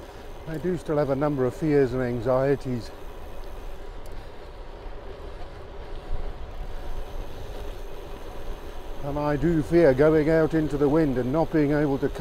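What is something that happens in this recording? Bicycle tyres roll on a paved road.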